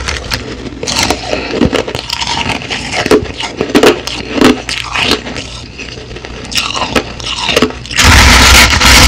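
A woman crunches ice in her mouth close to a microphone.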